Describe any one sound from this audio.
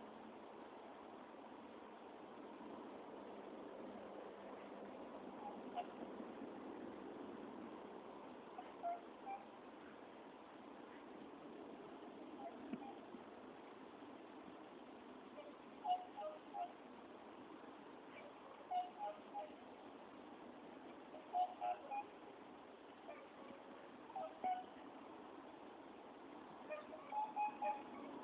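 A river flows steadily and quietly outdoors.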